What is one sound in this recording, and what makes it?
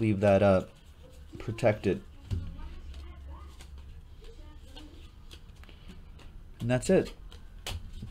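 Trading cards rustle and slide as they are shuffled in hands.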